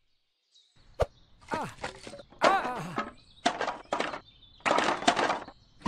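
Wooden logs thud as they drop into a metal grill.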